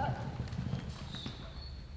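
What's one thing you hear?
A horse skids to a sudden stop, its hooves scraping through dirt.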